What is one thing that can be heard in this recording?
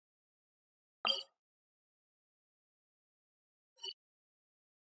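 A soft menu click sounds twice.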